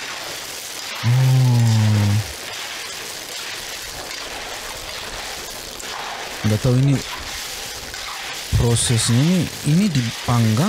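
A man speaks close to a microphone, with animation.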